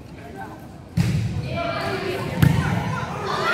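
A volleyball is struck with a sharp smack in an echoing gym.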